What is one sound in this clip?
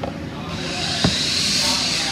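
A wooden board is set down on a table with a dull knock.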